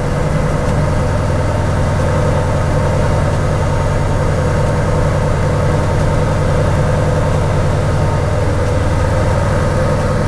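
A sports car engine idles with a steady, deep rumble.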